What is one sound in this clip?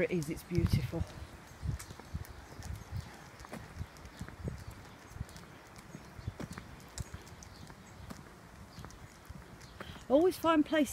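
Footsteps thud softly on a paved path.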